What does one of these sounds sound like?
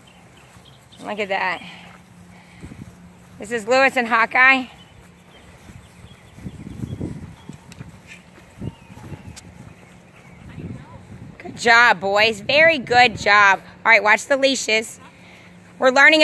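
A woman talks to dogs outdoors in a high, excited voice.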